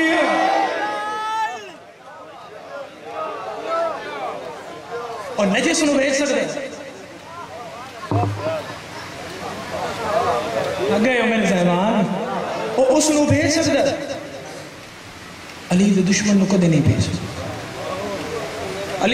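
A young man speaks passionately into a microphone, his voice carried over loudspeakers.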